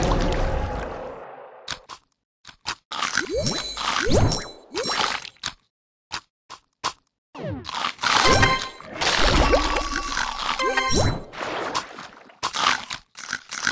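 Mobile game sound effects play in short bursts of chomps and chimes.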